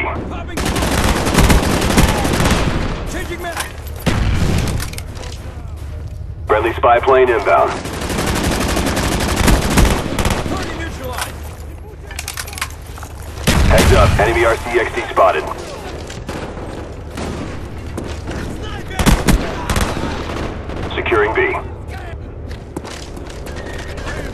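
Rapid gunfire cracks in short, loud bursts.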